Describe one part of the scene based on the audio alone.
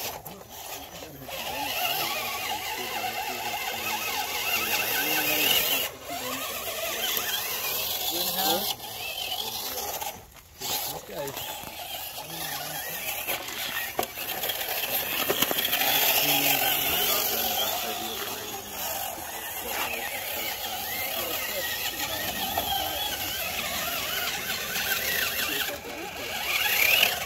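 The electric motor of a radio-controlled rock crawler whines as the crawler climbs over rocks.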